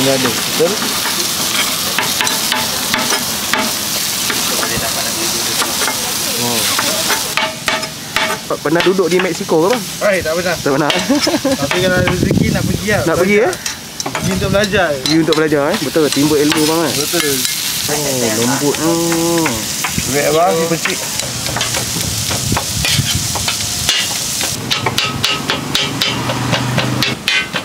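A cleaver knocks sharply on a metal griddle.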